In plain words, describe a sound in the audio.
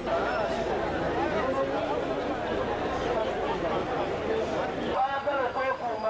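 A crowd of men talk over one another outdoors.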